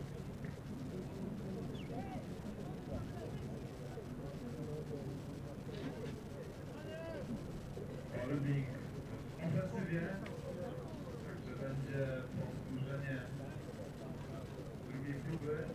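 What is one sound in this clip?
Several men talk and call out nearby in the open air.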